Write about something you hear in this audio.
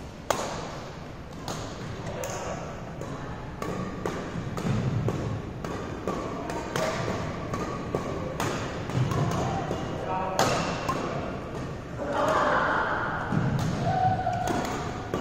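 Badminton rackets sharply strike shuttlecocks, echoing in a large hall.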